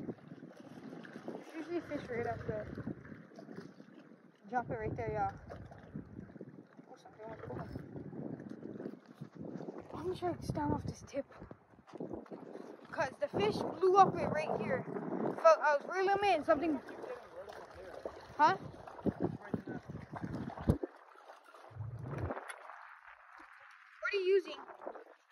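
Water laps gently against rocks.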